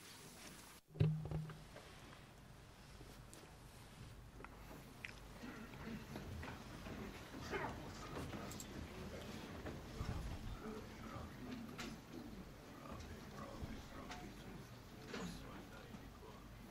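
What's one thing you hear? A large crowd murmurs and shuffles in a large echoing hall.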